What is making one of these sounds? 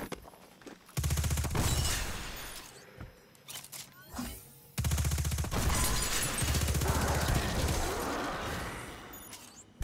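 A gun fires rapid, loud bursts of energy shots.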